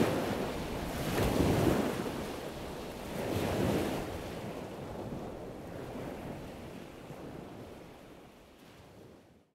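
Ocean waves roll and wash in surges, slowly fading.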